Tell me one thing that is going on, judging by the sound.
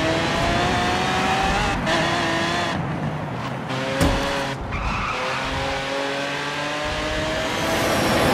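A sports car engine roars loudly, its pitch rising and falling through gear changes.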